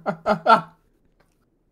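A young man laughs loudly over an online call.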